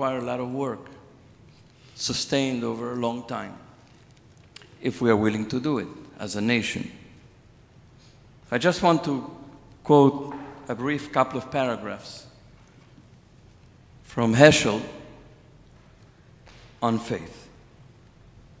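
A man speaks slowly into a microphone over loudspeakers in a large echoing hall, pausing between phrases.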